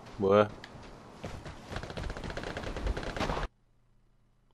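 Footsteps thump on wooden stairs.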